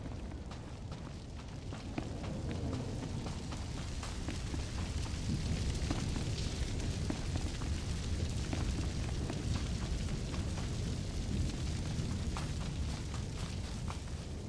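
Footsteps run quickly over rough ground.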